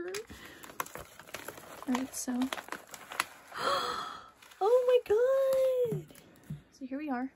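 A book slides out of a paper envelope with a scraping rustle.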